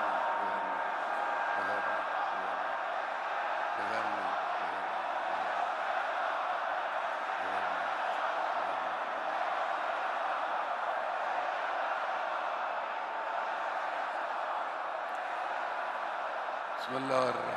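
A large crowd chants and roars outdoors.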